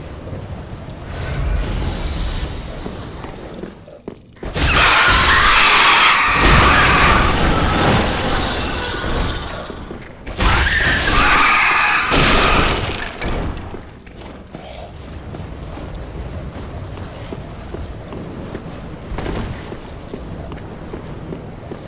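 Armoured footsteps run on stone.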